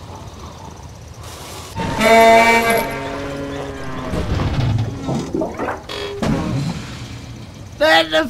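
A small tractor engine putters and revs.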